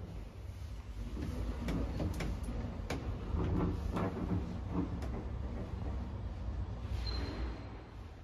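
A lift hums as it moves.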